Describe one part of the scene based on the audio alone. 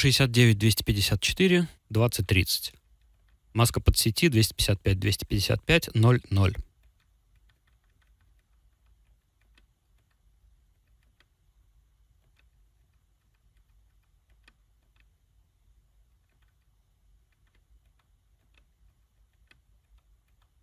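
A knob clicks softly as it is turned.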